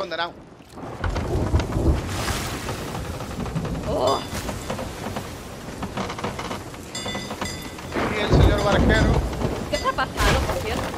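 Heavy rain pours down outdoors in a storm.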